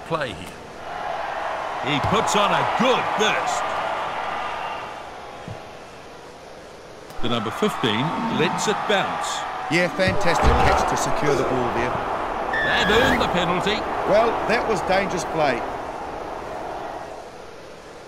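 A large crowd cheers and roars in a stadium.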